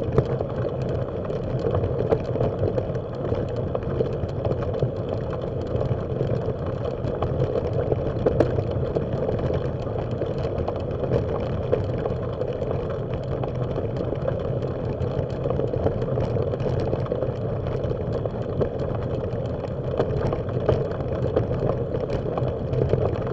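Tyres crunch steadily over gravel.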